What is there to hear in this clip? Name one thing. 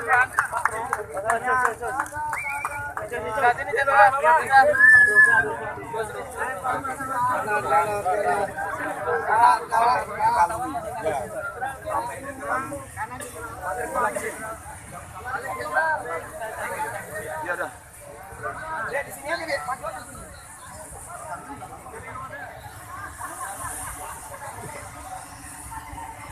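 A crowd of men and women chatter and call out loudly close by.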